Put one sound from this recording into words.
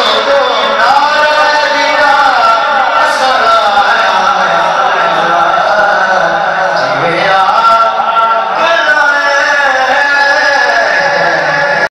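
A young man sings a melodic recitation into a microphone, amplified through loudspeakers.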